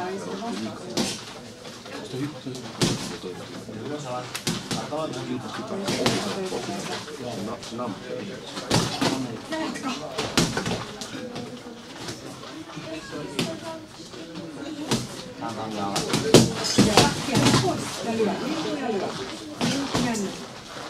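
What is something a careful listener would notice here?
Boxing gloves thud against each other and against bodies.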